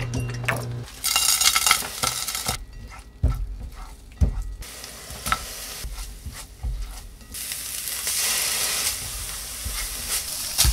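Food sizzles in a hot frying pan.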